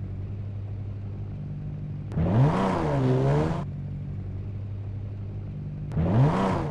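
A car engine hums steadily at idle.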